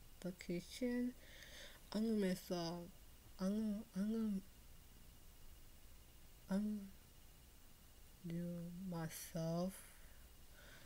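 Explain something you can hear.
A young woman speaks close to a microphone with animation, in short expressive bursts.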